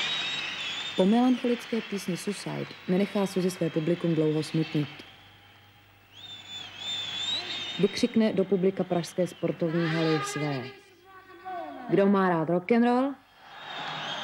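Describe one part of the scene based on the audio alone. A young woman sings loudly into a microphone.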